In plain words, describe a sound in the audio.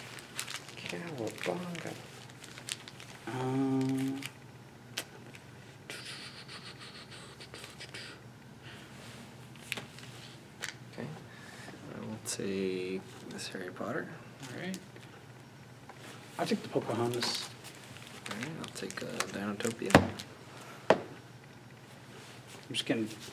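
Cards and packs rustle and tap on a table.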